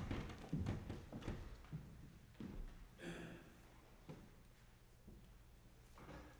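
People shuffle and rustle nearby in a quiet room.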